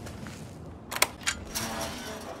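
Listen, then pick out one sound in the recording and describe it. A metal gate clanks open.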